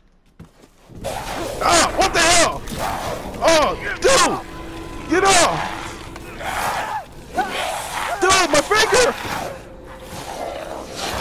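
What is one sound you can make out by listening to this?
A monstrous creature snarls and roars.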